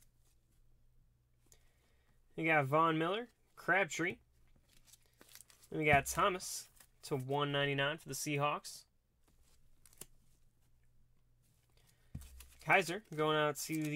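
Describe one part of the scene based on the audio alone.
Cards in plastic sleeves rustle and click softly as they are handled.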